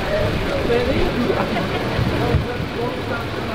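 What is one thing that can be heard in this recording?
An idling truck engine rumbles low and steadily.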